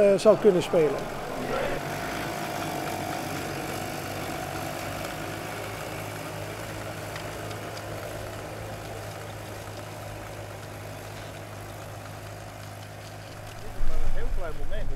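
A tractor engine hums steadily nearby.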